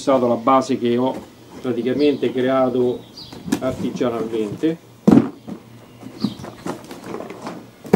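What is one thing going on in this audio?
A cardboard box scrapes and thumps on paving.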